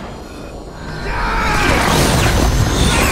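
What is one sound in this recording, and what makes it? A fiery burst of energy roars and crackles.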